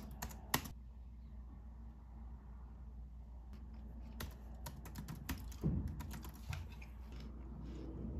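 A finger clicks on a laptop touchpad.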